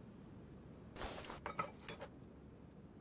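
Metal car parts clink and clatter.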